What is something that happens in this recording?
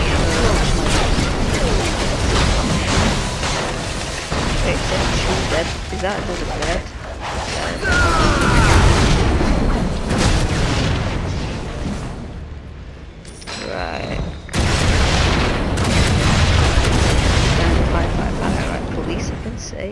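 Fiery blasts and explosions boom in quick succession.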